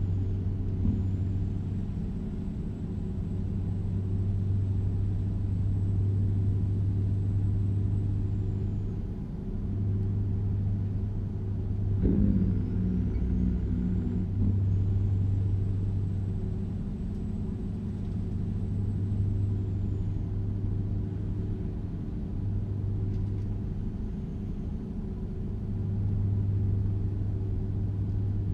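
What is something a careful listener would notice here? A truck engine rumbles steadily, rising and falling as it drives.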